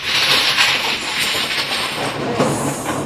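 Plastic tiles clatter loudly as hands shuffle them across a table.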